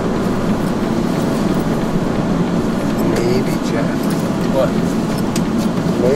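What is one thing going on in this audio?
A man rummages through bags on the back seat.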